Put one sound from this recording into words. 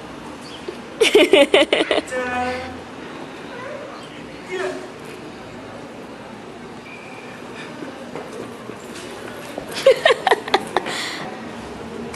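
A man calls out and laughs with animation nearby.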